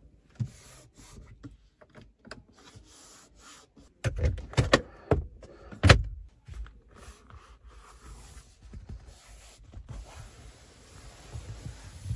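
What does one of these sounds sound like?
A hand pats and rubs a padded surface.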